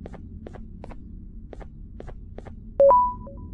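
Footsteps tap at a steady walking pace.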